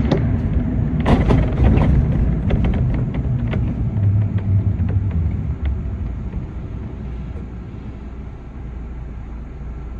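A car drives slowly along a road with a steady low rumble.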